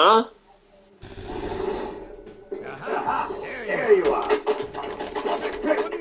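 An elderly man speaks with animation through a loudspeaker.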